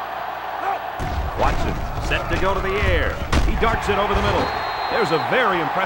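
Football players collide with heavy thuds.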